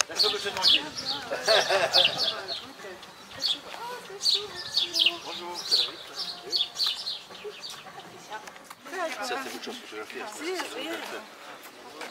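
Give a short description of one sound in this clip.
Several men and women chat nearby outdoors.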